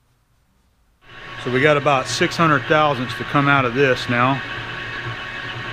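A lathe motor starts and hums steadily as the chuck spins.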